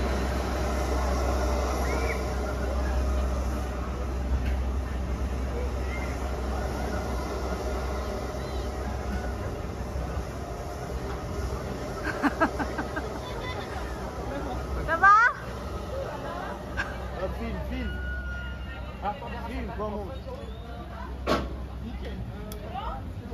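Young riders chatter and call out nearby.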